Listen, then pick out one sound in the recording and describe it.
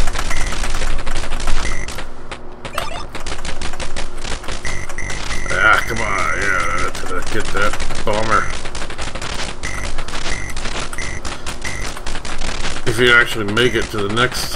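Rapid electronic gunfire beeps and pops throughout.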